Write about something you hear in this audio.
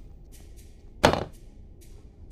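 A wooden bat drops onto a hard floor with a thud.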